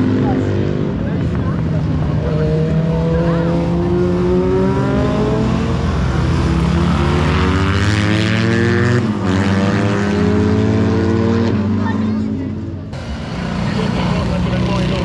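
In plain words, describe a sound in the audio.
Small engines whine and rev as they race past, rising and falling in pitch.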